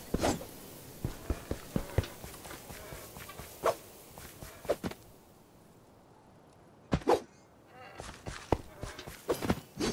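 Footsteps tread lightly on grass and stone.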